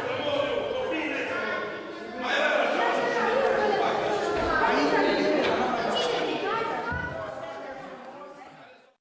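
A man sings loudly through a microphone and loudspeakers in an echoing hall.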